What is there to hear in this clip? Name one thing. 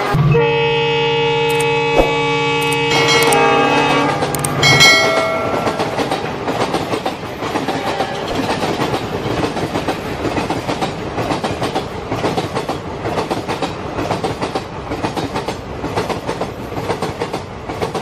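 A toy train clatters quickly along plastic tracks.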